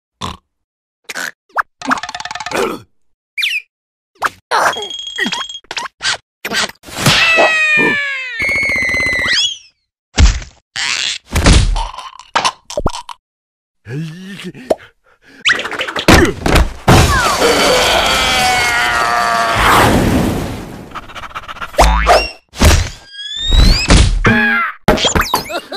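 Cartoon creatures squeal and babble in high, comic voices.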